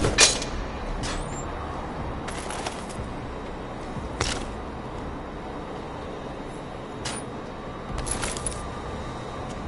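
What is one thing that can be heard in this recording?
Items are picked up with short clicks.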